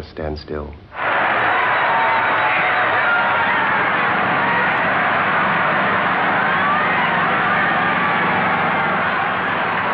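A large crowd cheers and shouts in a loud, steady roar.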